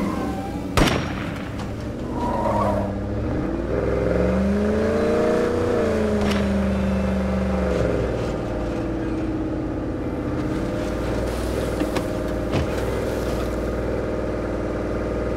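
A truck engine roars, rising and falling in pitch as it speeds up and slows down.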